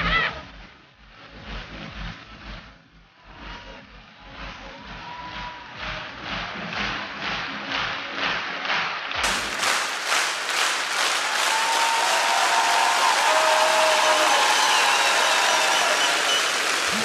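An audience claps steadily in a large hall.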